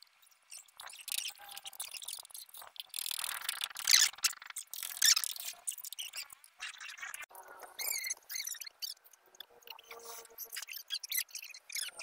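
A paintbrush swishes on wooden boards.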